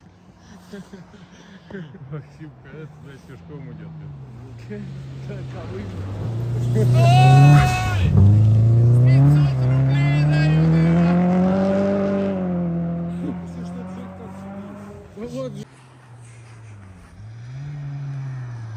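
A rally car engine roars closer, revs hard and fades into the distance.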